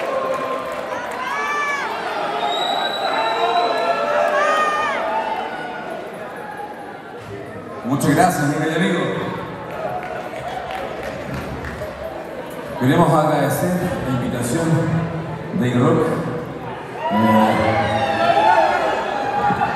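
A man sings into a microphone over loudspeakers in a large hall.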